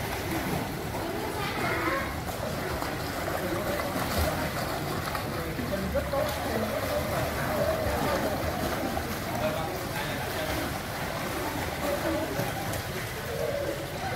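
Swimmers kick and splash in water.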